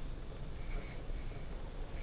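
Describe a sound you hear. A cloth rubs softly against a glass bottle.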